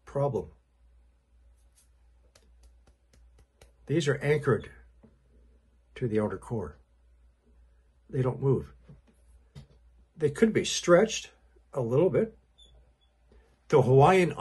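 An elderly man speaks calmly in short bursts, close by.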